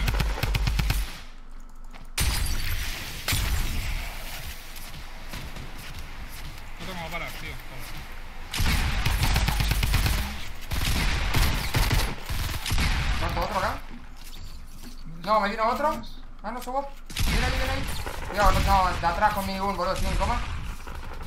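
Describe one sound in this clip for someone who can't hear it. Gunshots crack rapidly in quick bursts.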